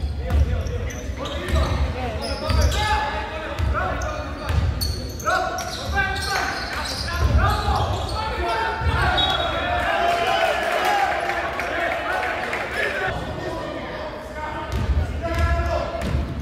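Basketball shoes squeak sharply on a wooden court in a large echoing hall.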